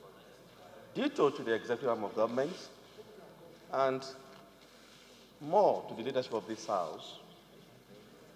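A man reads out calmly into a microphone.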